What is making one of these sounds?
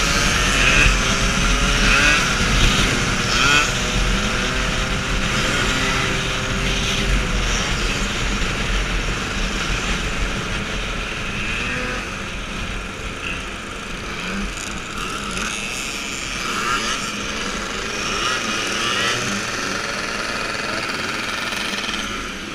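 Scooter engines buzz and whine close by.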